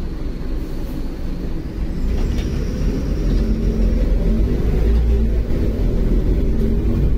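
A bus rattles and creaks over the road.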